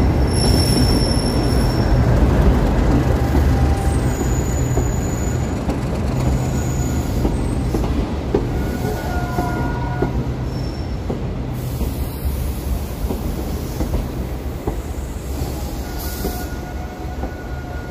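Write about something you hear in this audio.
Train wheels clatter and squeal over the rails as carriages roll slowly past.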